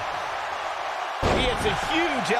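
A body thuds heavily onto a wrestling mat.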